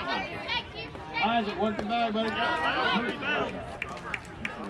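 Several children shout and cheer nearby outdoors.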